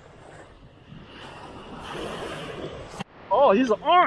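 Small waves wash gently onto the sand.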